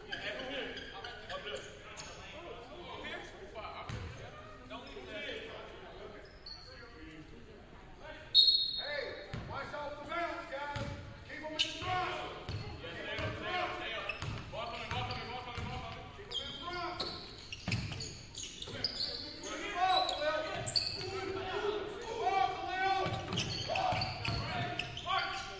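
Sneakers squeak on a wooden court in a large echoing gym.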